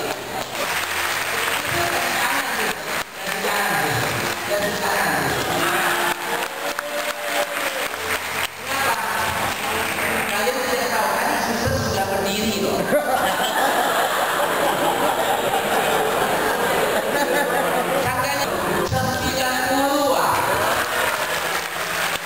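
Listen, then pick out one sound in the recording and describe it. An audience claps along.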